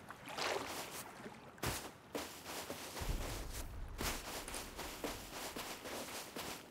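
Footsteps crunch on sand and grass at a steady pace.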